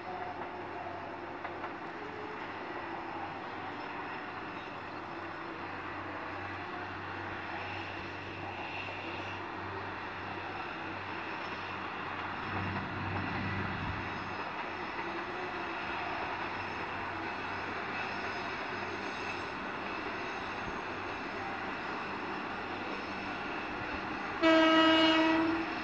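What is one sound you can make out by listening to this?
A train rumbles steadily along in the distance.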